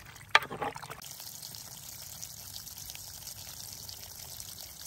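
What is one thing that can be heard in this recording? Water splashes steadily over a rock.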